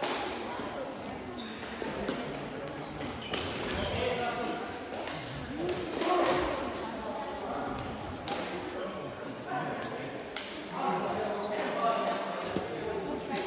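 Men call out to one another across a large echoing hall.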